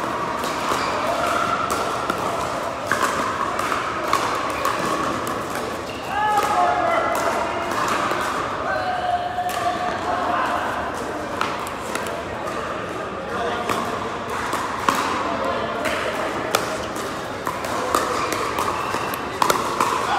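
Paddles strike a plastic ball with sharp pops, over and over.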